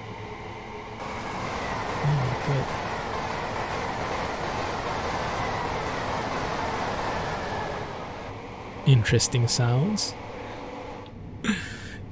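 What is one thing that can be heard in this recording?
A train rushes past with a loud rumbling roar.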